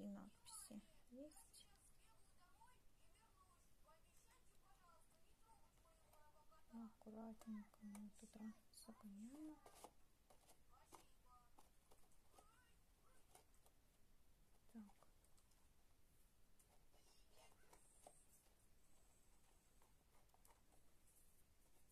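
Paper crinkles and rustles softly under handling fingers.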